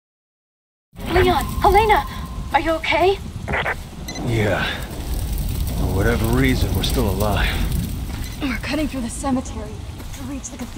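A man talks calmly over a radio.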